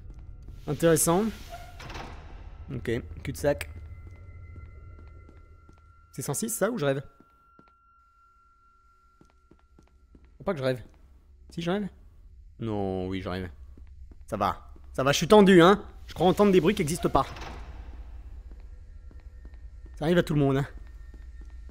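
A young man talks in short bursts, close to a microphone.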